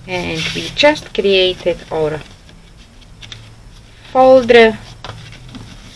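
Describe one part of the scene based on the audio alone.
Paper rustles as it is folded and handled.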